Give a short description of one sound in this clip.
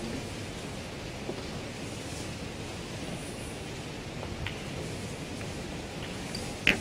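A snooker ball is set down on a table with a soft click.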